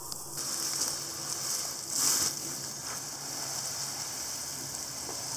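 Water sprays steadily from a hose nozzle into a plastic bucket.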